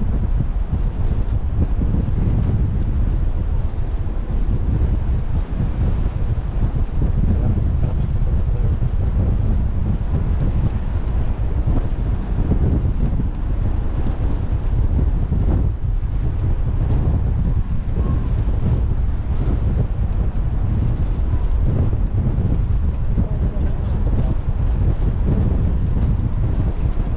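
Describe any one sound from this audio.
Waves wash against a ship's hull below.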